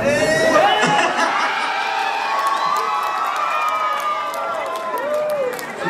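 A group of men cheer and shout.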